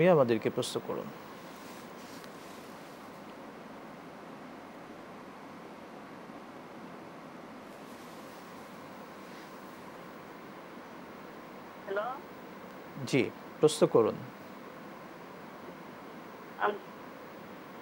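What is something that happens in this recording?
A man speaks calmly into a close microphone, in short phrases with long pauses.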